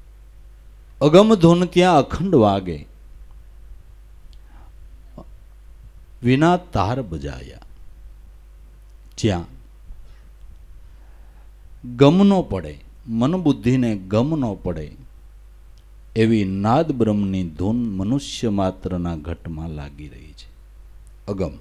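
An older man speaks slowly and intently into a microphone, with pauses between phrases.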